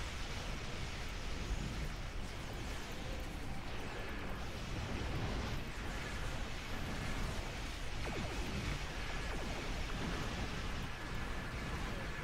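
Explosions rumble deeply.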